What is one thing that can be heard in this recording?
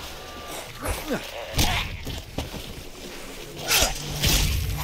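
A weapon strikes a zombie with heavy thuds.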